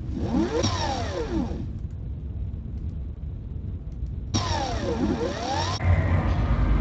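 A sliding door whooshes open.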